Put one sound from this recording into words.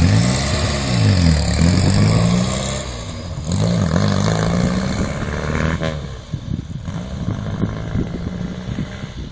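Tyres roll along a paved road.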